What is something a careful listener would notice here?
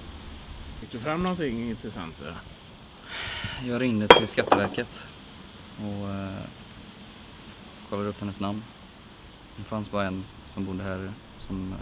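A young man speaks quietly and hesitantly close by.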